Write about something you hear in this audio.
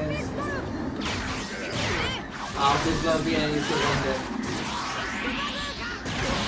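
Game attack effects whoosh and crash.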